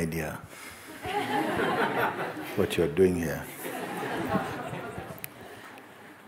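A crowd laughs softly.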